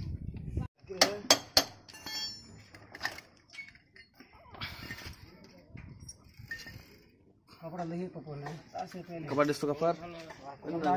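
A metal wrench clinks against metal parts.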